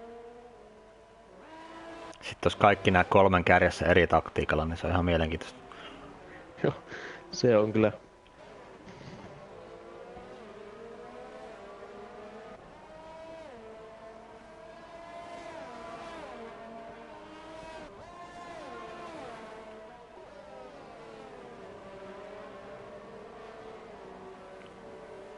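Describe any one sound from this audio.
Racing car engines whine at high speed, rising and falling in pitch as gears change.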